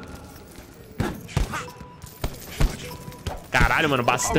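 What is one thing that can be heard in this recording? Punches thud against a heavy bag.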